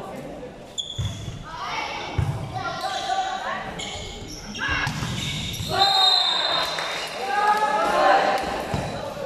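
A volleyball thumps as players hit it.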